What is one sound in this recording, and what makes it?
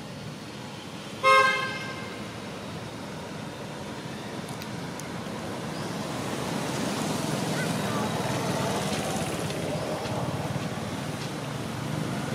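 A young monkey's claws scratch softly on tree bark.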